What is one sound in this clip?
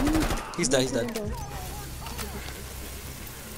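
Gunshots fire in short, sharp bursts.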